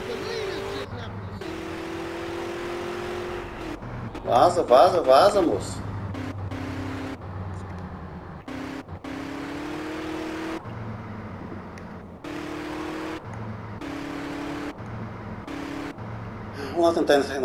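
A car engine hums steadily, rising and falling as the car speeds up and slows.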